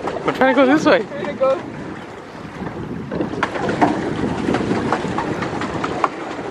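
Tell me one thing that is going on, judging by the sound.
Water churns and splashes beside a pedal boat.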